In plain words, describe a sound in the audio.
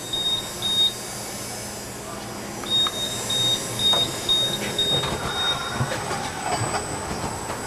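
A packaging machine hums and whirs steadily.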